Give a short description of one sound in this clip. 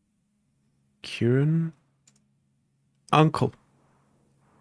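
A man makes short, drawn-out exclamations close to a microphone.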